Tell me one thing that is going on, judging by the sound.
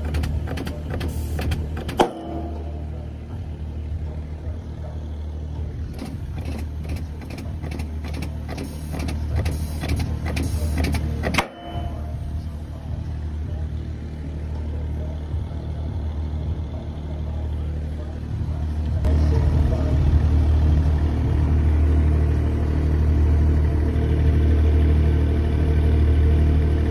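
A machine hums steadily, growing louder partway through.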